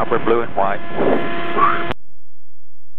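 A light aircraft's propeller engine drones in flight.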